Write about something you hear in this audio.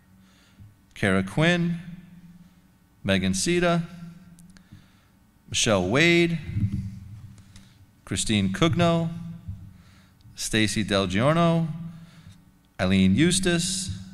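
A man reads out names over a microphone, in short bursts with pauses.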